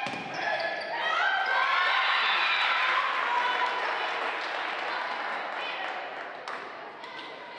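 A crowd cheers and claps in a large echoing hall.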